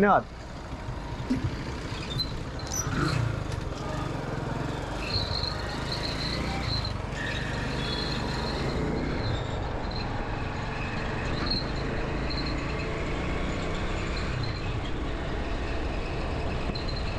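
A motorcycle engine runs with a steady low rumble.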